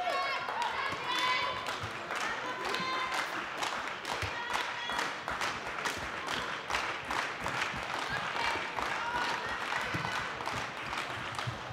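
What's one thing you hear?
A handball thuds in an echoing hall.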